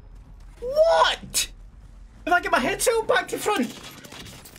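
A young man shouts with excitement into a microphone.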